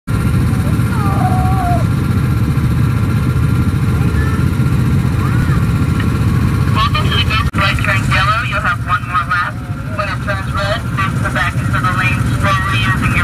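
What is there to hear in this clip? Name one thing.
Go-kart engines rumble steadily.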